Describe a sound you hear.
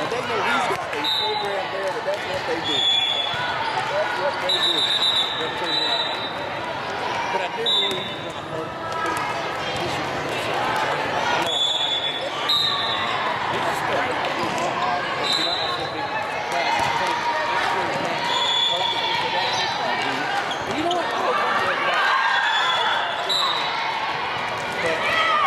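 Young women call out and chatter in a large echoing gym.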